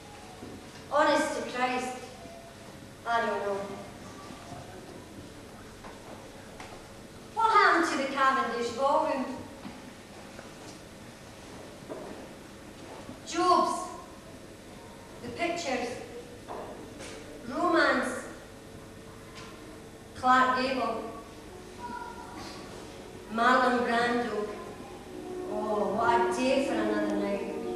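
A middle-aged woman speaks with emotion in short bursts, with long pauses.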